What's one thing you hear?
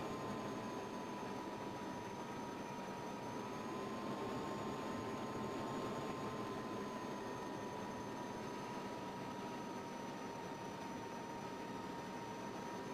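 A jet engine roars steadily with a high whine.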